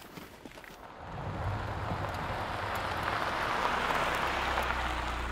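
A van drives past on a dirt road.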